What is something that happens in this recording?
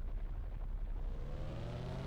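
A car engine starts and idles.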